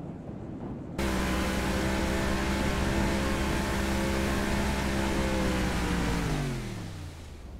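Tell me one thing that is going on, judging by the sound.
Water rushes and sprays against a speedboat's hull.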